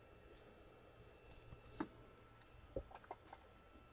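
Hands handle a card with soft rustles and taps.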